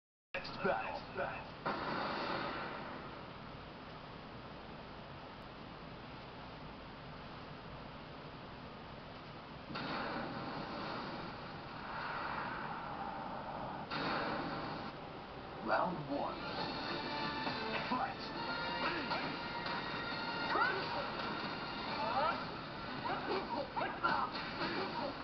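Game music plays through a television speaker.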